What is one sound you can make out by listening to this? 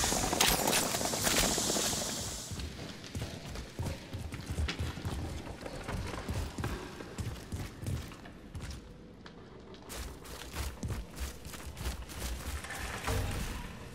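Footsteps crunch steadily over rough ground.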